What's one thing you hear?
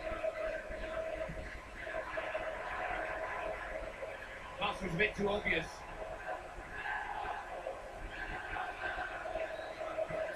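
A football video game's crowd roars steadily through a television speaker.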